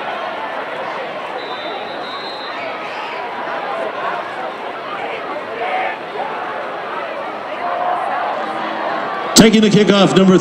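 A crowd cheers and murmurs outdoors in a large stadium.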